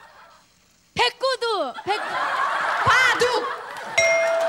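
A middle-aged woman calls out loudly into a microphone.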